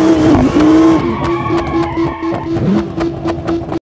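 A car crashes against a metal guardrail with a scraping clatter.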